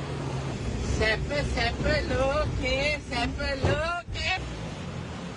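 A man talks excitedly nearby.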